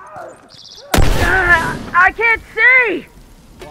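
A smoke bomb bursts and hisses.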